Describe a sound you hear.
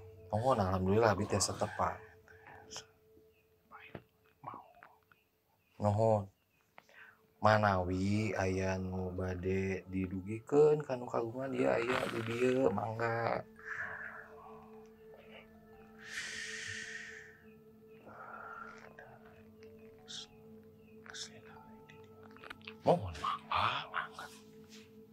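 A man speaks slowly in a low, strained voice close by.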